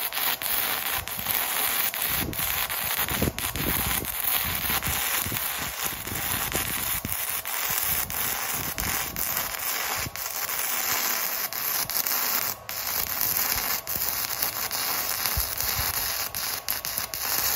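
A welding arc crackles and sizzles steadily.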